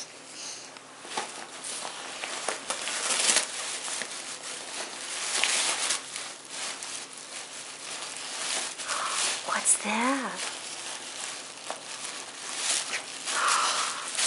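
A dog tears and crinkles paper and plastic wrapping.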